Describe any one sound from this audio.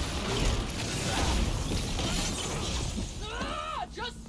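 Loud blasts and whooshing effects crackle through a fight.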